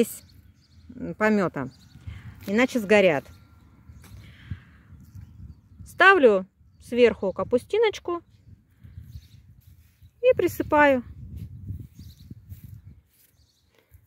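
A trowel scrapes and digs into loose soil.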